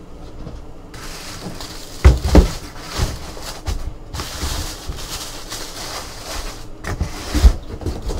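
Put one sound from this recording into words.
Tissue paper rustles and crinkles as hands pull it out of a box.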